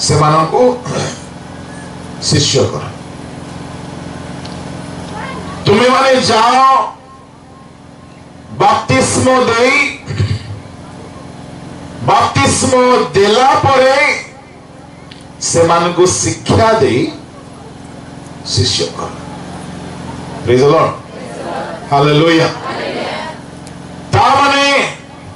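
A man speaks forcefully into a microphone over a loudspeaker, in bursts with pauses.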